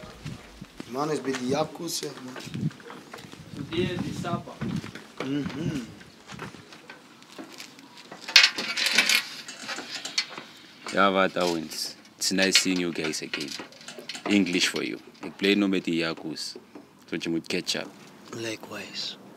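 Young men talk casually close by.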